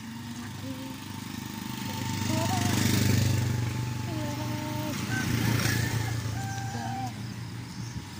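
A motorized tricycle passes close by.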